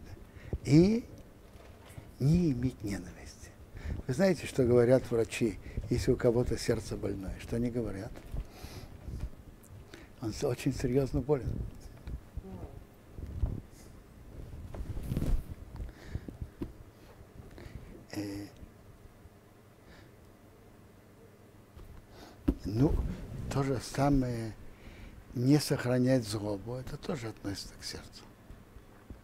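An elderly man speaks calmly and warmly into a close microphone, with pauses.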